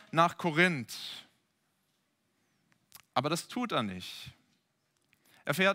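A young man speaks calmly into a headset microphone, in short phrases with pauses.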